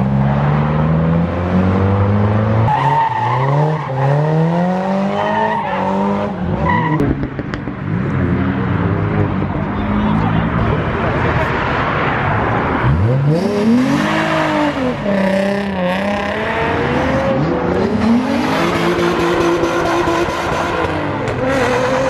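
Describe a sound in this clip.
Tyres squeal loudly as a car spins.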